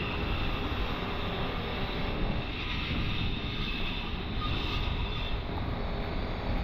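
Wind gusts steadily outdoors, rumbling loudly.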